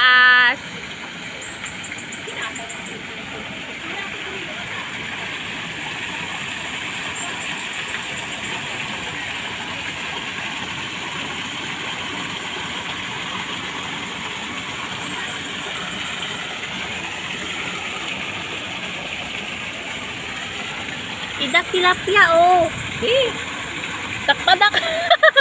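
A small waterfall splashes steadily into a pond.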